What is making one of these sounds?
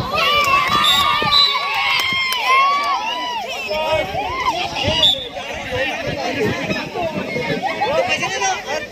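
A crowd of children shouts and cheers excitedly outdoors.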